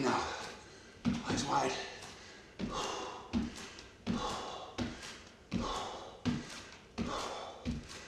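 Feet thump rhythmically on a floor.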